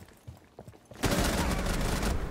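A rifle fires a shot in a video game.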